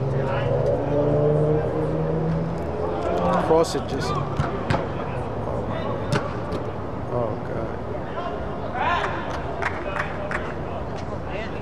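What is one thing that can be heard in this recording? Young men shout and call out to each other from across a large, echoing indoor hall.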